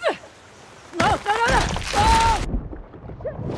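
Water splashes loudly as someone plunges in.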